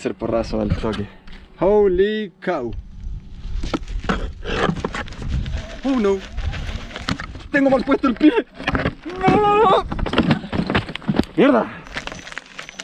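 A man talks close by, with animation.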